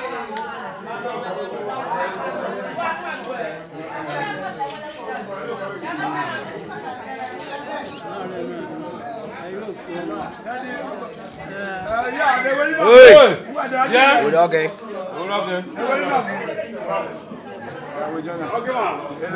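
Many people chatter around the microphone.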